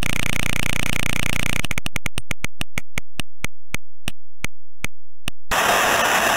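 A prize wheel spins with rapid clicks that slow down and stop.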